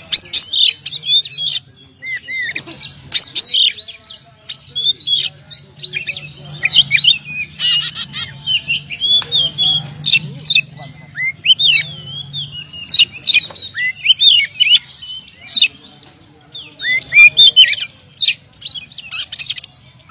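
A songbird sings loudly and close by, with rapid whistles, trills and sharp chirps.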